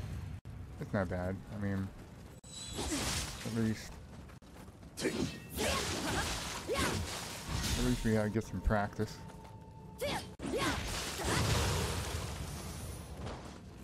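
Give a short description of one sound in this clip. Swords clash and strike in a fight.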